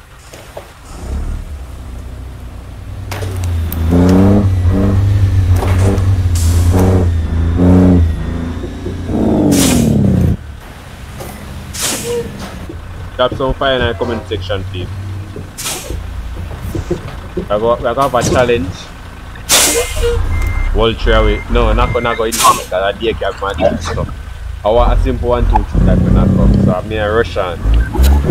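A heavy truck engine rumbles low as the truck drives slowly.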